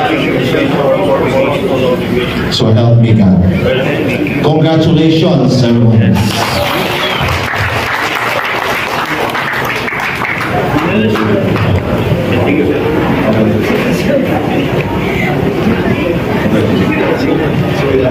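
A man speaks into a microphone over a loudspeaker in a large echoing hall.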